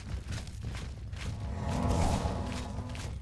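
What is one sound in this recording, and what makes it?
A magic spell crackles and hums as it is cast.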